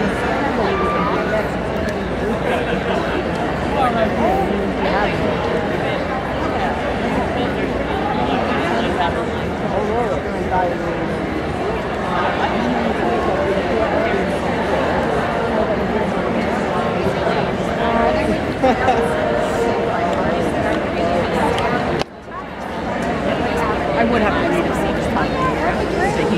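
A crowd of people chatter loudly in a large echoing hall.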